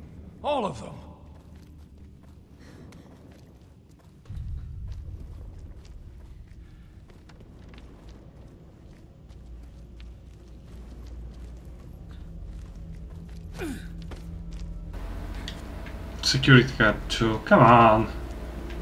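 Footsteps scuff on a hard floor.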